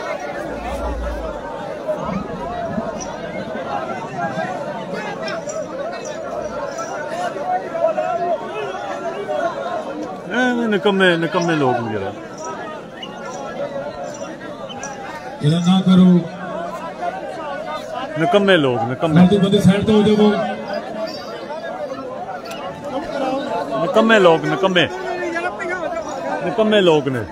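A crowd of men murmurs and talks outdoors.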